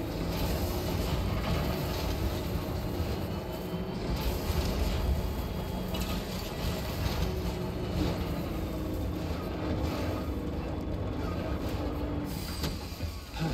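Tyres crunch and bump over rocky ground.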